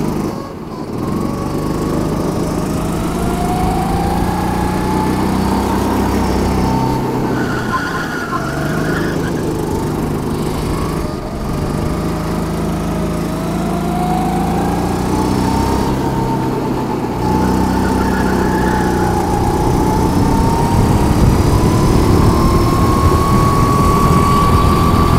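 A kart engine revs loudly up close, rising and falling as it speeds up and slows for corners.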